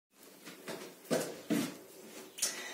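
Bare feet thud softly on a floor.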